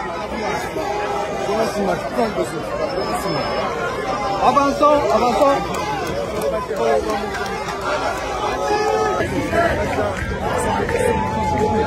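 A crowd of men and women talk and murmur close by, outdoors.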